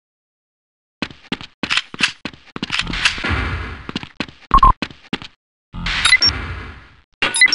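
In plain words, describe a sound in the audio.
Footsteps clack on a hard tiled floor.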